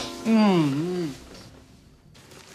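A woman speaks in a raised, strained voice.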